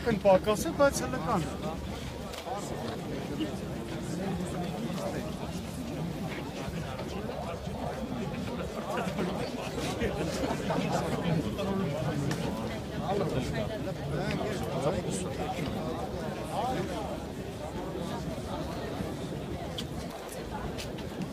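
A large crowd of men and women talks and murmurs outdoors.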